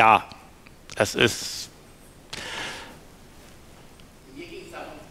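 A middle-aged man speaks with animation into a microphone in a large echoing room.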